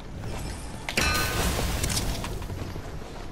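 Wooden planks clatter into place.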